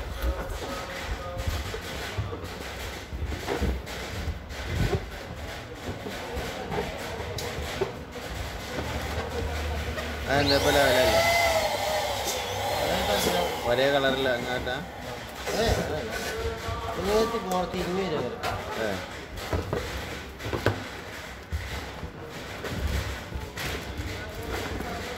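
Rubber balloons squeak and rub against each other as hands push them into place.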